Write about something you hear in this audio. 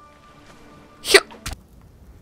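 A spear strikes a small animal with a sharp thud.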